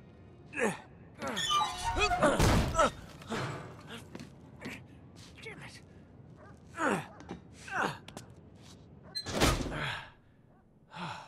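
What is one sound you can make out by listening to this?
A man scrambles and scuffs against a metal pipe.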